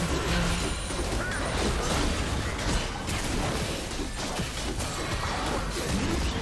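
Spells and attacks crackle and clash in a game battle.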